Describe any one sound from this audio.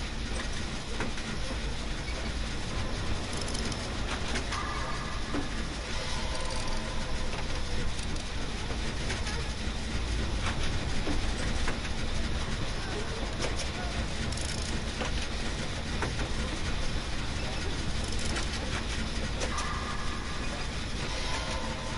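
Metal parts rattle and clank as a machine is being repaired.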